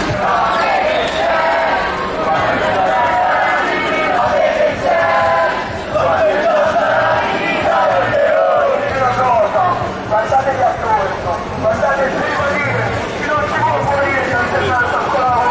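A crowd of young people chants and shouts outdoors.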